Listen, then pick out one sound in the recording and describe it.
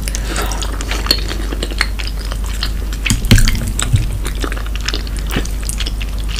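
Chopsticks click against a plastic tray.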